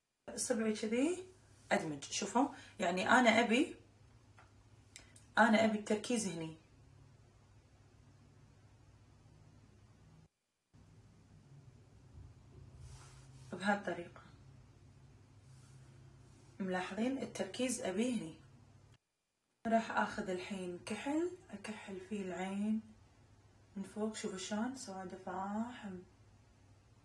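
A young woman talks calmly and close up, in short bursts with pauses.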